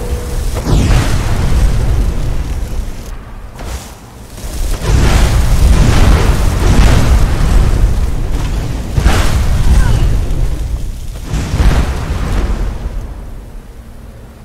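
Fiery explosions roar and boom with a deep rumble.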